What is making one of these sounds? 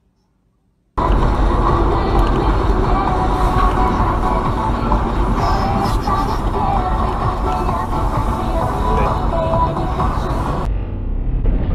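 A car engine hums and tyres rumble along a highway.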